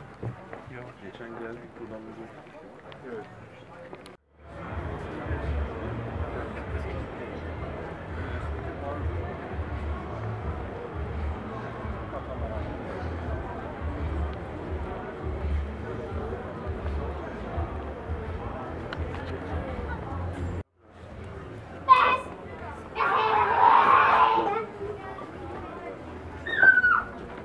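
Footsteps of a group shuffle along pavement.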